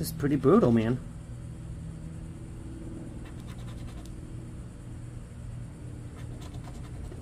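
A coin scratches and scrapes across a paper card.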